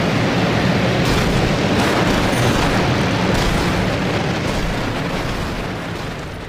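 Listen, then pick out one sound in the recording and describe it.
Monster trucks crash and bang against each other.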